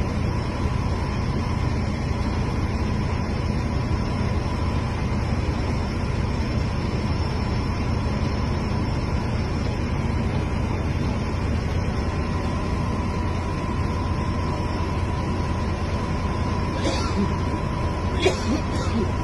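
Drilling rig machinery rumbles and drones steadily.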